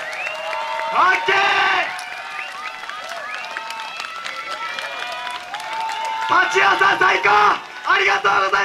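A group of young dancers shouts a chant in unison.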